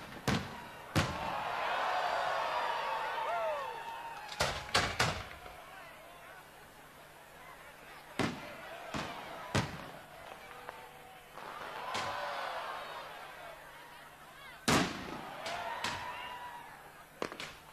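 Fireworks whistle and fizz as they shoot up.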